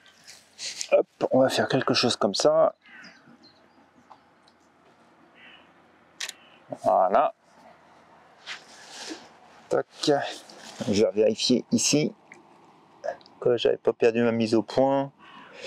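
A middle-aged man speaks calmly, close by, outdoors.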